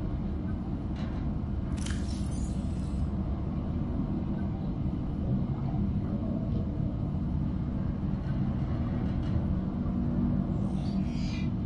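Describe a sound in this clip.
Soft electronic clicks and blips sound as a game menu is browsed.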